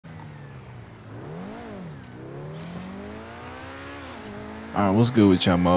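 A sports car engine revs up and down as it accelerates.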